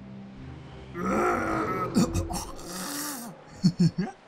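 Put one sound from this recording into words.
A large shark bites down with a loud crunching chomp.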